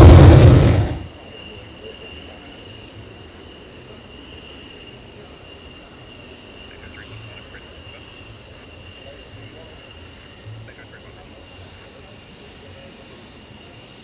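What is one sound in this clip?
A jet engine whines softly in the distance as a jet taxis.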